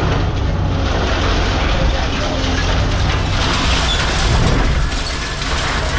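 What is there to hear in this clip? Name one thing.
Scrap metal clanks and crashes as it is dropped.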